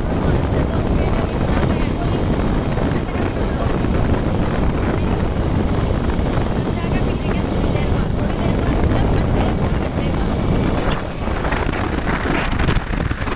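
Wind buffets the microphone loudly.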